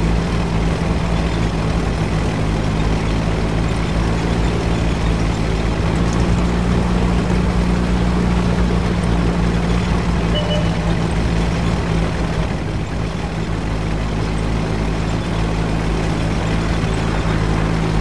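A heavy tank's engine rumbles as the tank drives over rough ground.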